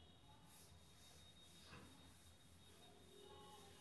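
A cloth duster rubs softly across a chalkboard.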